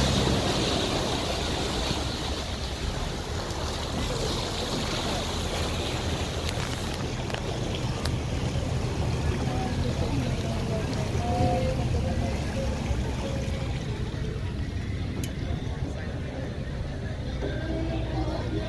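A boat's engine rumbles steadily.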